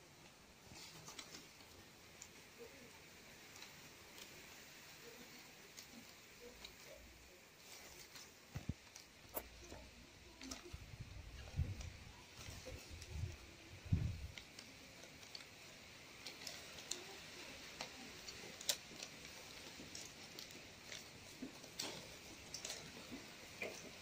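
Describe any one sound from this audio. Leaf strips snap and tick against each other.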